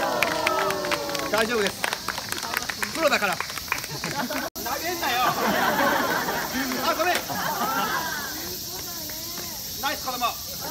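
A crowd of adults and children chatters outdoors.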